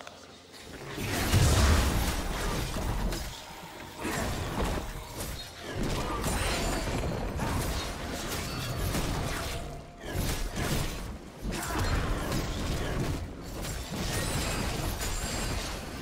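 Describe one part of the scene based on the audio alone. Spell effects whoosh and crackle in a video game battle.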